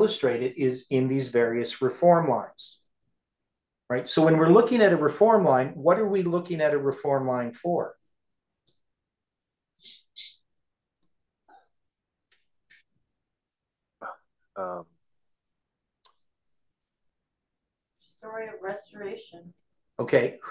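A man speaks calmly and steadily nearby, as if lecturing.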